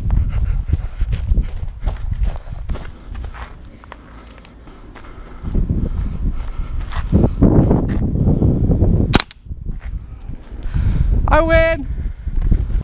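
Footsteps crunch on dry grass and gravel.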